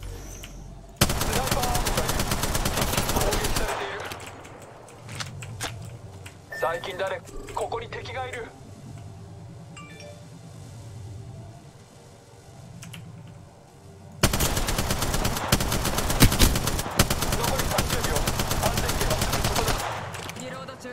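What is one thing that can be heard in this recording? A machine gun fires long rapid bursts at close range.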